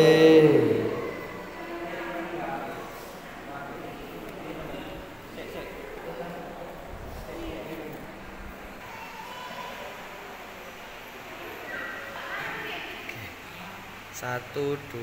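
Several adults murmur quietly.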